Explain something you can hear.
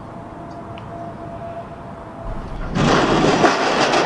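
A bicycle rattles and scrapes down a metal slide.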